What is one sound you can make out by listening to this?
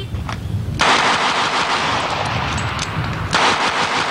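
A pistol fires a sharp shot.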